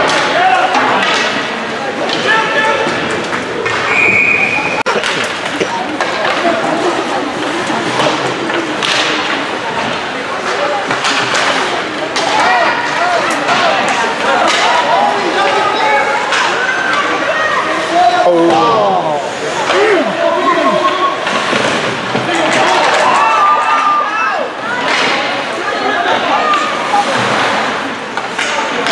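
Young male players shout and call out across an echoing rink.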